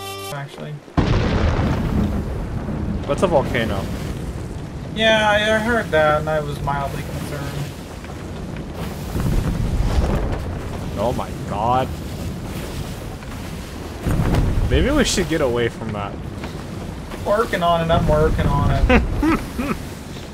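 Rough sea waves roar and crash in a storm.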